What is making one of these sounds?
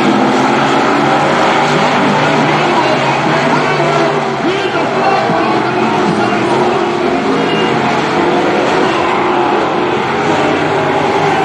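Race car engines roar loudly and rev as they speed around a dirt track outdoors.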